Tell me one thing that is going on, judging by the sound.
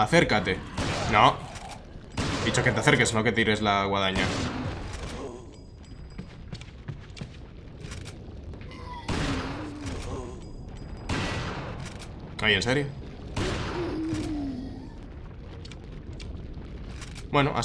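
Gunshots ring out in quick bursts with echo.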